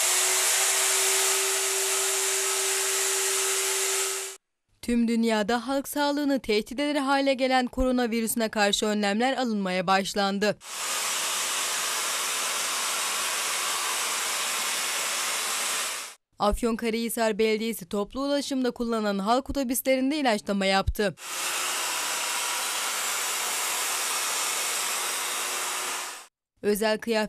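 A sprayer hisses steadily, loud and close.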